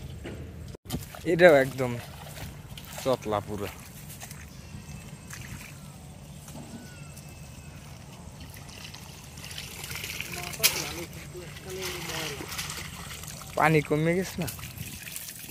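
Water splashes as a man wades and lifts a trap.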